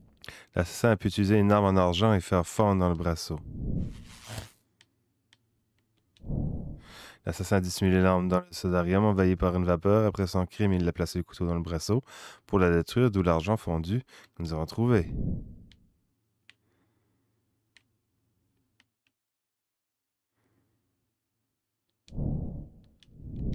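A man talks close into a microphone.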